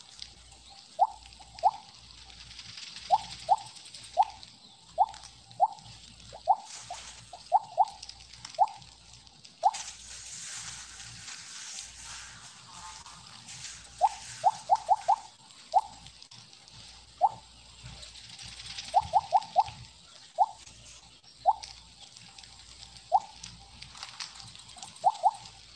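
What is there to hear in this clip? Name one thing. Short, bright game chimes ring out again and again, sometimes in quick bursts.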